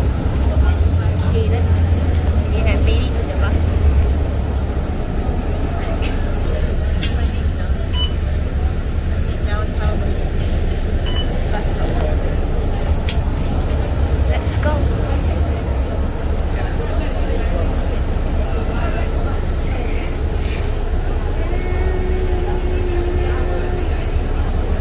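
A bus engine rumbles low and steady from inside the bus.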